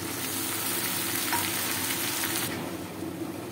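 Oil sizzles and crackles in a pan.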